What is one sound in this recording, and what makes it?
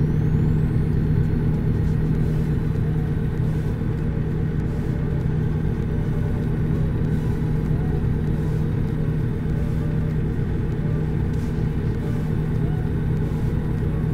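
A truck engine drones steadily at a low pitch while driving.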